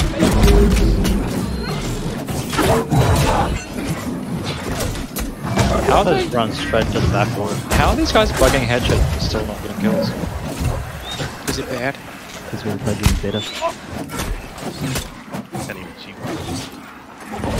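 Weapons clash and strike in a fast fight.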